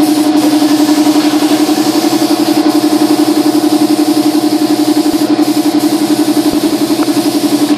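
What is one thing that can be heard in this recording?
An electric sander hums and buzzes steadily against wood.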